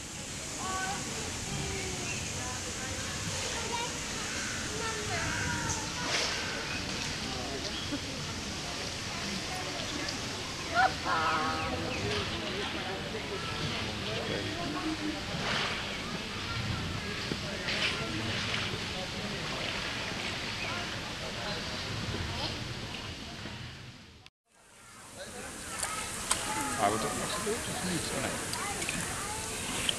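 Water laps gently against a rock.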